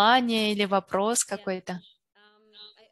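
A middle-aged woman speaks warmly over an online call.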